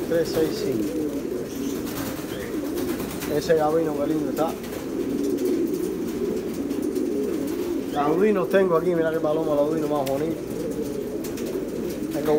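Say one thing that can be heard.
Pigeons coo in low, wavering murmurs close by.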